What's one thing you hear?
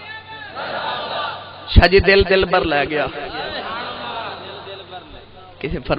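A man speaks loudly and with passion through a loudspeaker, with echo.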